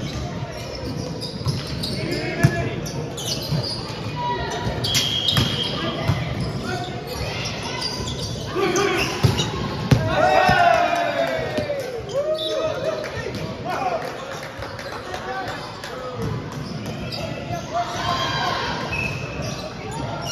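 Players' shoes squeak on the court floor.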